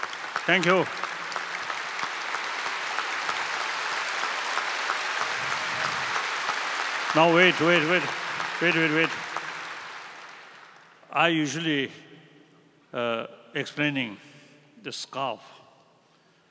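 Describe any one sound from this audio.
An elderly man speaks into a microphone over loudspeakers in a large hall, with pauses.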